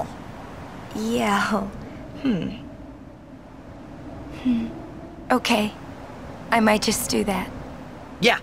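A young woman answers hesitantly, then speaks softly.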